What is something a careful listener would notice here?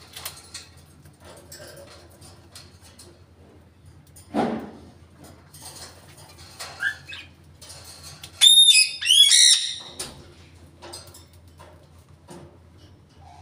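A parrot's claws and beak clink on a wire cage.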